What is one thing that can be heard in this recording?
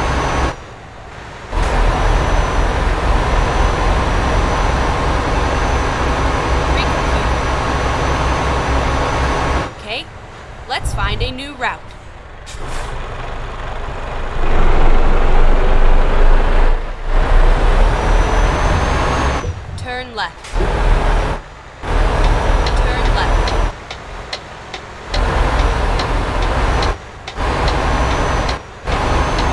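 A truck engine rumbles steadily as the truck drives slowly.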